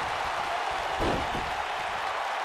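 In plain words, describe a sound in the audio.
A body slams onto a wrestling ring mat with a heavy thud.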